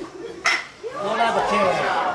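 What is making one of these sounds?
Young men cheer and shout after the hit.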